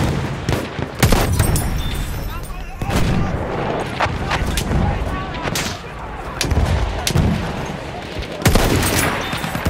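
A rifle fires sharp, loud shots that boom and echo.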